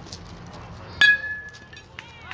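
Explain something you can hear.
A metal bat strikes a ball with a sharp ping.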